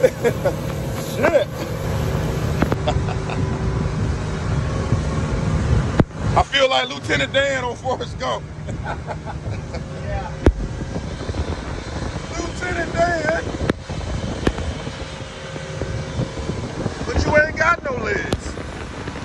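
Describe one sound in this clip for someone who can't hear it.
A man shouts and laughs excitedly close by.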